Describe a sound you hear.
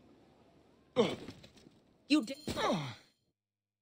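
A figure lands with a thud.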